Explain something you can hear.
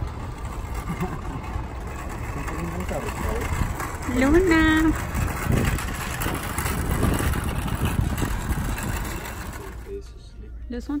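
A shopping cart rattles as it rolls over pavement.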